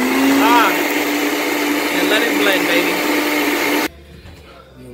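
A blender whirs loudly and then stops.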